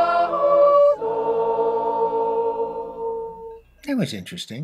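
A choir of men and women sings a sustained chord outdoors.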